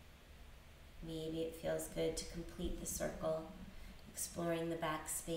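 A woman speaks calmly and softly nearby.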